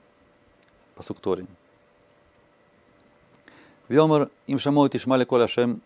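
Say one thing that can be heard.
A man reads aloud slowly and clearly, close to a microphone.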